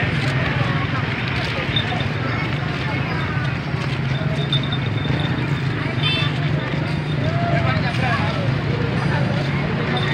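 Motorbike engines idle and rumble nearby.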